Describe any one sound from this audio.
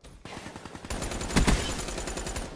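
Rifle shots crack loudly.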